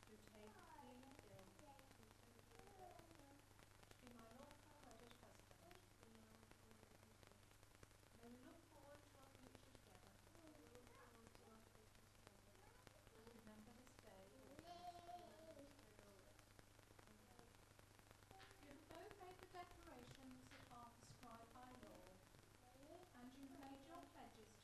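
A woman speaks calmly and steadily, reading out nearby.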